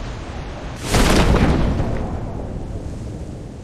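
A parachute snaps open with a sudden loud whoosh.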